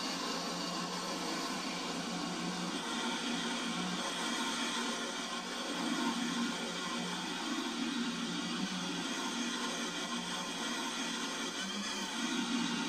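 A train rumbles steadily along a track.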